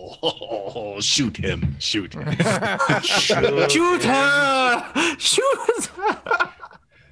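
Several men and women laugh loudly over an online call.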